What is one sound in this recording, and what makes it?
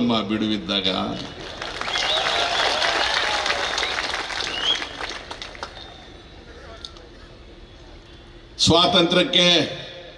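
An elderly man speaks forcefully into a microphone over a loudspeaker.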